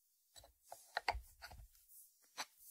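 A ceramic dish is set down on a wooden board.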